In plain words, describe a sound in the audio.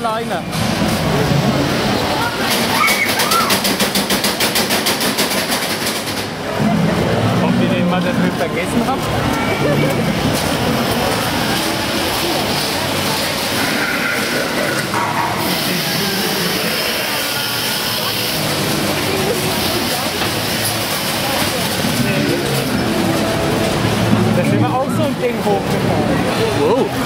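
A large crowd chatters and murmurs below.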